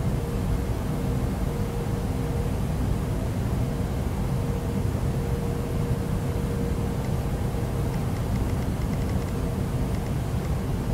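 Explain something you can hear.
Jet airliner engines drone steadily, heard from inside the cockpit.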